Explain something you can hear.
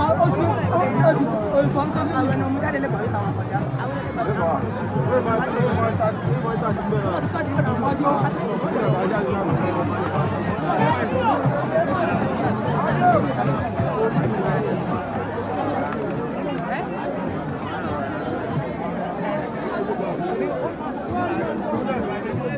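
A large outdoor crowd chatters and murmurs all around.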